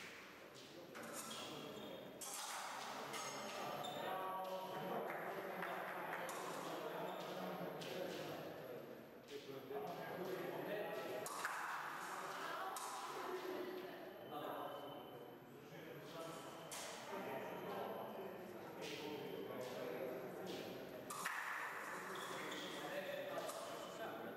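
Fencing blades clash and click sharply.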